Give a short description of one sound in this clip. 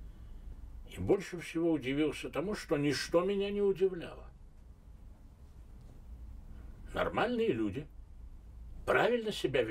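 An elderly man speaks calmly and thoughtfully close to a microphone, with pauses.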